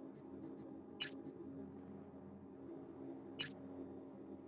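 Soft interface clicks sound as menu entries are selected.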